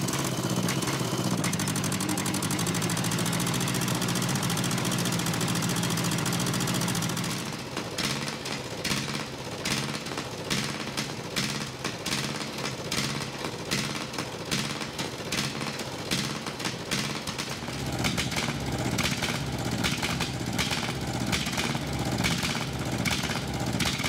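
A large diesel engine runs loudly close by, with a steady hum that turns into a rough, pulsing chug.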